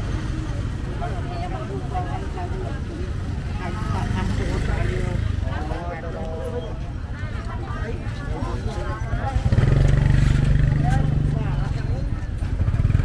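Men and women chatter in a busy crowd nearby.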